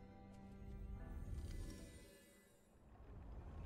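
A magical shimmer swells and fades.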